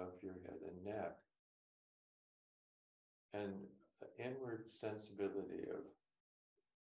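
An older man speaks calmly into a nearby microphone, with pauses.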